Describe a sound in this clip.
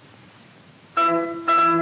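A harpsichord plays a few notes.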